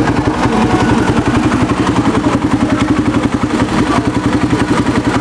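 A motorcycle engine idles close by with a fast, rough, steady rumble.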